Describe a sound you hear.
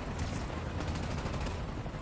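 A tiltrotor aircraft roars overhead.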